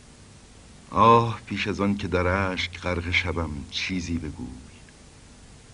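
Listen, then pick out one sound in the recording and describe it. A man chants aloud outdoors.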